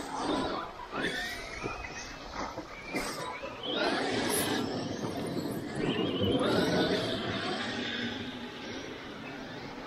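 A small electric car motor whines and revs as it races over dirt.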